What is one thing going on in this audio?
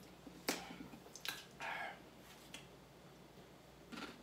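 A young man crunches on a chip.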